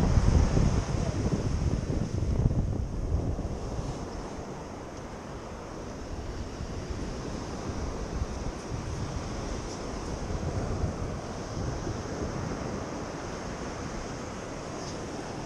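Flip-flops slap softly on wet sand as a person walks.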